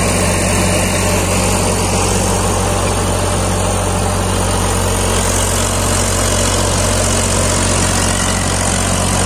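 A rotary tiller churns and grinds through dry soil.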